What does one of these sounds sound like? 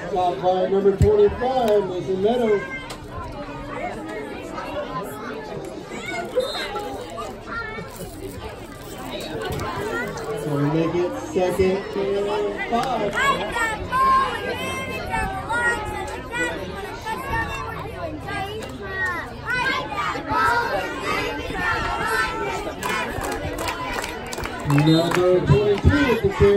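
A crowd of spectators talks and cheers outdoors.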